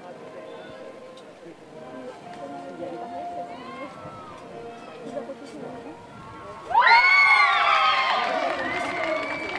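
Horse hooves thud on soft sand at a canter.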